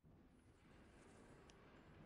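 A spell shimmers with a bright magical whoosh.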